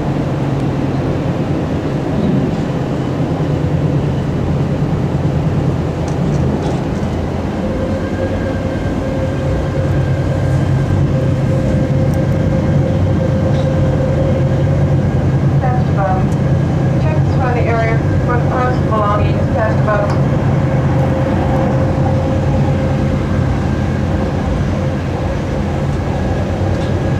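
A train rumbles and hums steadily as it rolls along the tracks.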